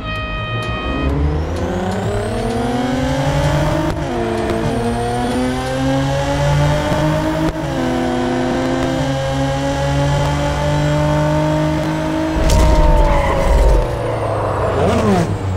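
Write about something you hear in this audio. A race car engine roars as it speeds up, with its pitch dropping at each gear shift.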